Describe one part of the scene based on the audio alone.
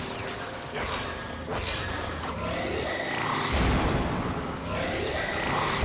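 Weapons fire and energy blasts crackle in a busy burst of fighting.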